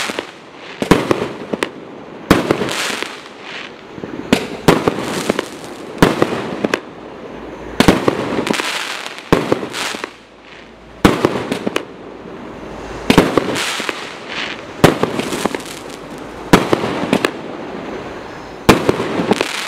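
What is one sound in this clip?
Fireworks burst overhead with loud bangs.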